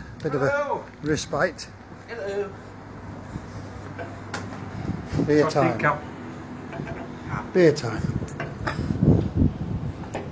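A middle-aged man talks cheerfully nearby.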